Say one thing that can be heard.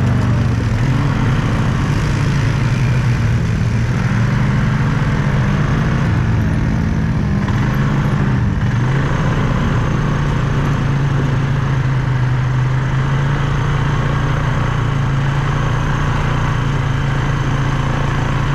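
Tyres crunch over loose gravel and dirt.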